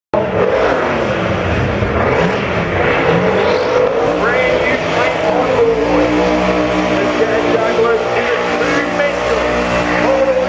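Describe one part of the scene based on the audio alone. A race car engine roars loudly, its pitch rising and falling as it revs.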